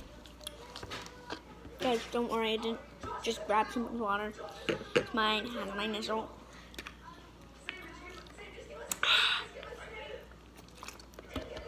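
A young girl drinks from a plastic water bottle.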